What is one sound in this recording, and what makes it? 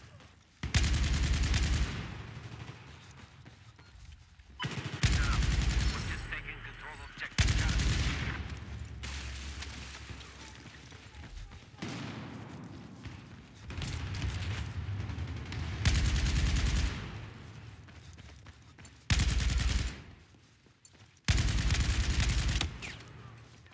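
Rapid automatic gunfire rattles in bursts, echoing through a large hall.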